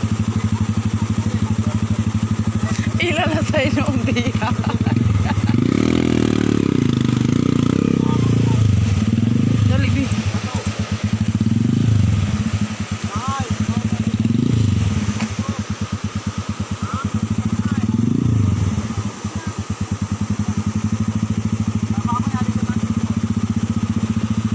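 A motorbike engine idles and revs unevenly.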